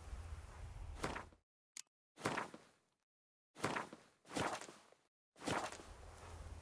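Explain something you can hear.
A menu clicks and whooshes several times.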